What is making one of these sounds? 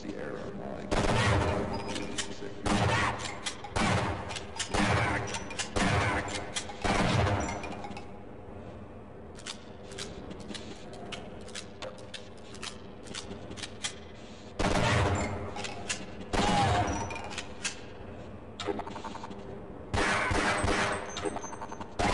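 Shotgun blasts boom loudly, one after another.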